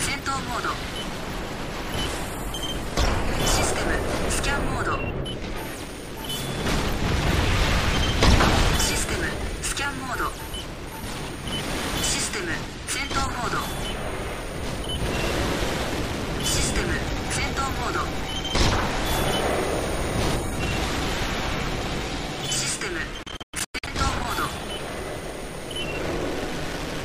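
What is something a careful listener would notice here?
Mech booster thrusters roar.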